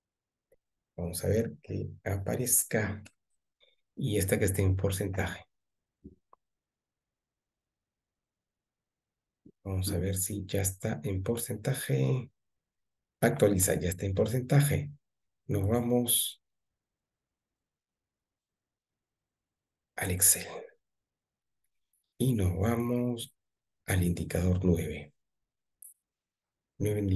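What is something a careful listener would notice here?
An elderly man speaks calmly over an online call, with pauses.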